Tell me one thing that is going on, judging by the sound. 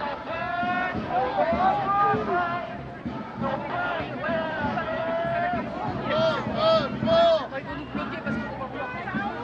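A crowd of marchers chants loudly outdoors.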